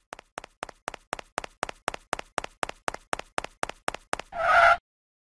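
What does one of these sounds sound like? Light cartoon footsteps patter quickly and evenly.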